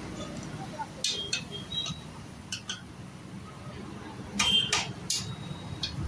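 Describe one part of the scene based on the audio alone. Metal taps and clinks against a steel pipe.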